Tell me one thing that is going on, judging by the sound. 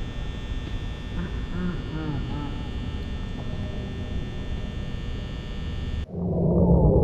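An electric fan whirs steadily and then cuts out.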